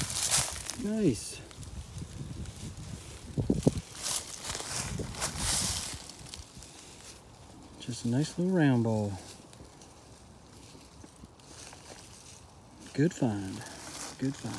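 A man speaks briefly and calmly nearby.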